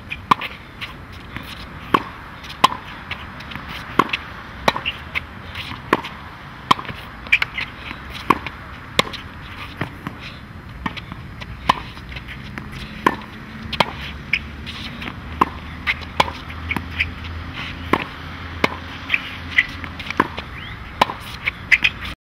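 A tennis ball is struck by a racket again and again at a steady pace.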